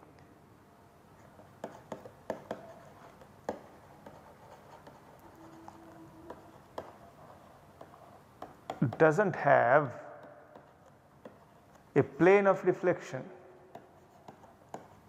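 A pen taps and scratches softly on a writing surface.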